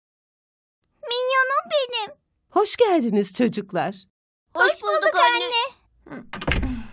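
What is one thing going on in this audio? A young girl speaks with animation.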